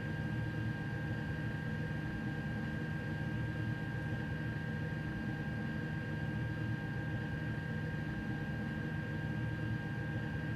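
An electric locomotive hums steadily while standing still.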